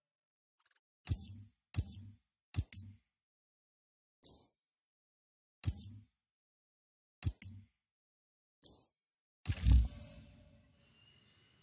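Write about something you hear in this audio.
Short menu swooshes sound each time the page changes.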